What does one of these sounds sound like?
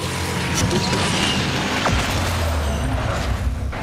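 A car crashes into another with a loud bang.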